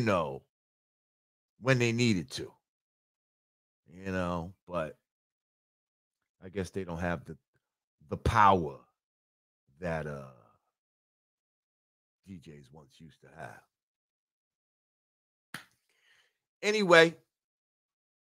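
A middle-aged man speaks slowly and calmly into a close microphone, with long pauses.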